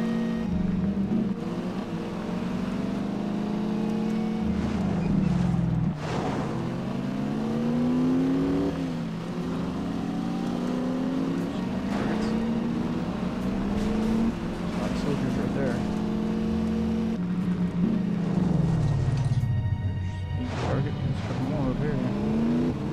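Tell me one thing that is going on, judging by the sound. A car engine revs and shifts gears as it speeds along.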